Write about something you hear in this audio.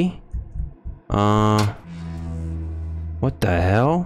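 A metal locker door creaks open.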